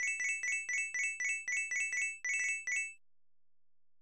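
Quick bright chimes ping in a rapid run.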